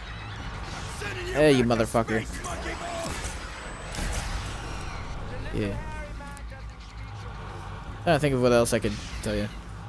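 A futuristic gun fires zapping blasts.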